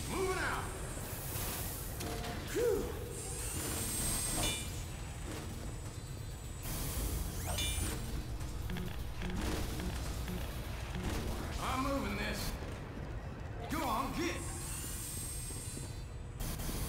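Machines hum and whir steadily.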